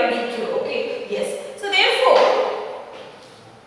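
A woman speaks clearly.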